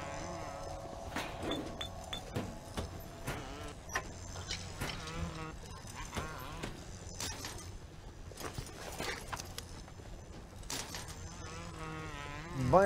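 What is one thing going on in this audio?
Short game clicks and chimes sound as items are picked up.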